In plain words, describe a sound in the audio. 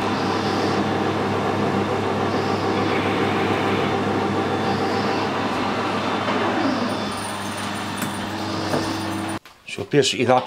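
A metal lathe hums steadily as its cutter works into metal.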